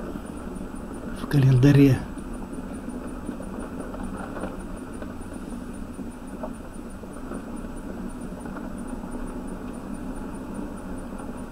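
A car engine hums steadily while driving slowly.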